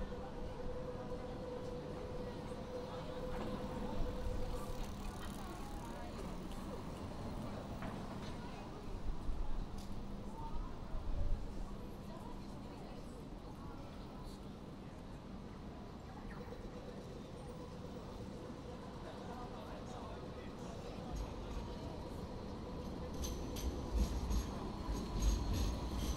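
Footsteps tap on pavement close by.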